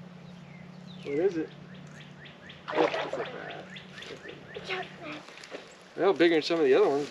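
A young boy talks excitedly nearby.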